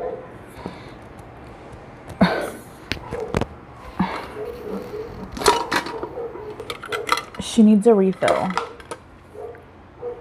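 A metal tumbler lid clinks and clatters.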